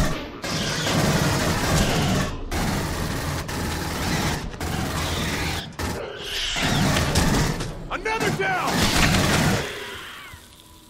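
Gunfire rattles in loud, rapid bursts.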